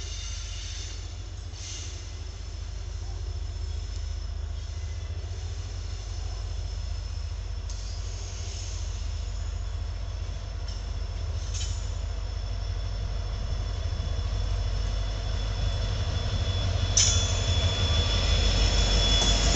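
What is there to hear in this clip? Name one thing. A diesel locomotive approaches with a deep rumbling engine that grows louder.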